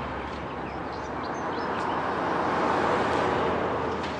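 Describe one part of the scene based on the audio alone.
A van drives past.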